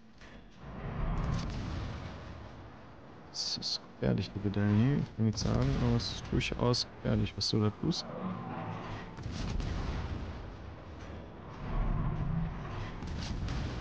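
Naval guns fire with deep booms.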